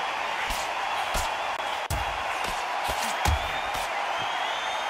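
Punches land with dull thuds.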